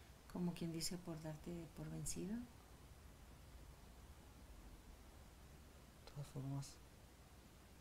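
A woman speaks softly and calmly up close.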